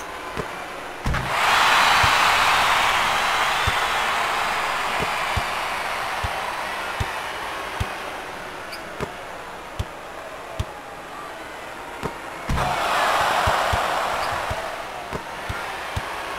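A basketball bounces steadily on a hard court.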